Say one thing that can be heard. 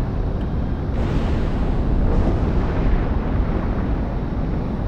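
Electric crackling bursts nearby.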